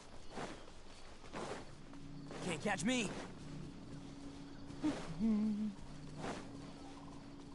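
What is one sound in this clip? Footsteps swish quickly through tall grass.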